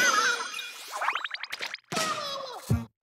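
A sharp popping burst rings out.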